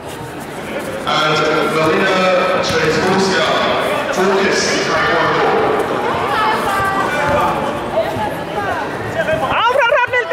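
Spectators chatter and cheer in the background.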